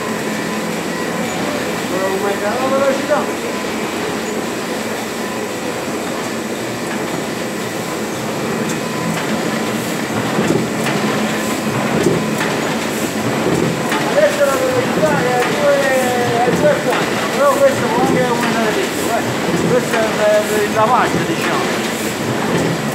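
An offset printing press runs with a clattering mechanical rumble.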